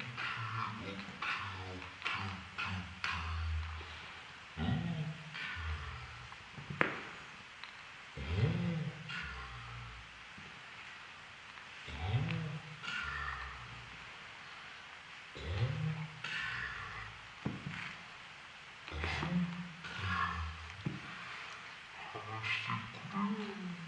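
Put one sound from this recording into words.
A puppy's body rubs and scuffles on a carpet.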